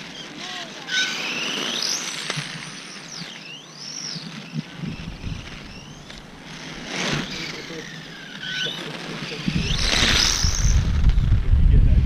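A small electric motor whines as a radio-controlled car speeds by.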